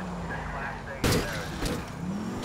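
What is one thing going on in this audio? A car crashes into a truck with a loud bang.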